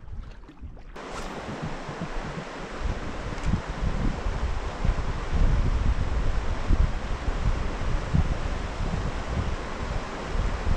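Water rushes steadily over rocks nearby.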